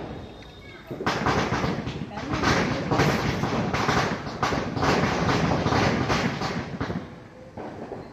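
A firework rocket hisses loudly as its fuse burns.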